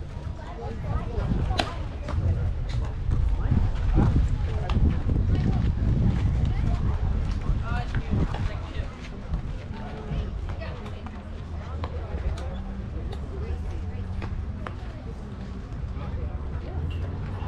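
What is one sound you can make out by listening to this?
Wind blows across an open outdoor field.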